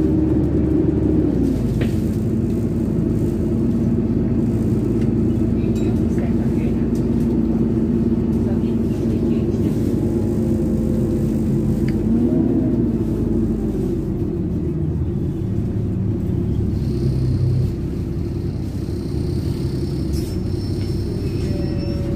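Loose fittings rattle and click inside the moving bus.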